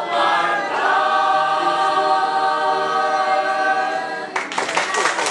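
A mixed choir of adult men and women sings together in held notes.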